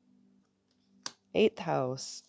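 A card snaps as it is flipped over.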